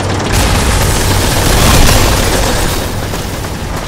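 An explosion booms and debris scatters.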